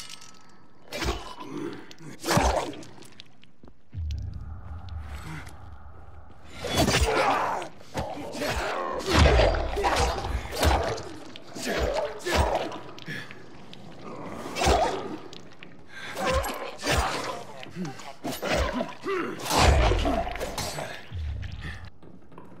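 Heavy blows thud and smack repeatedly.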